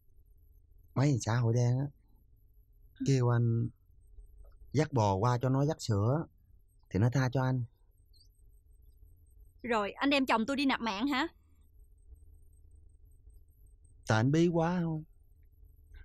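A man speaks calmly in conversation, close by.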